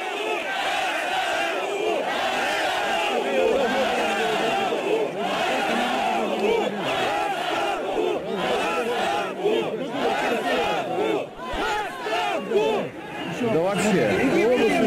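A large crowd shouts and murmurs outdoors.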